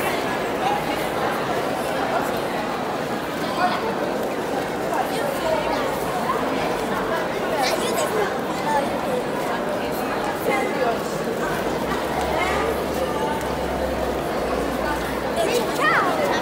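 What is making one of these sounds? Foil balloons rustle and crinkle as children shake them.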